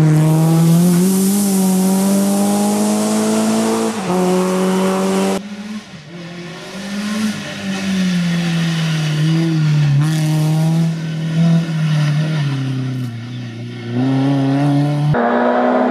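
A rally car engine roars loudly, revving up and down as the car speeds along a road.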